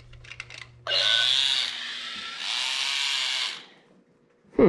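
A small toy robot whirs as it moves.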